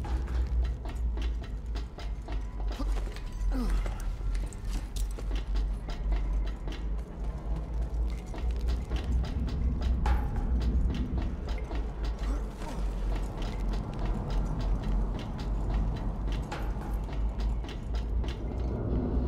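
Heavy footsteps thud and clank on metal walkways.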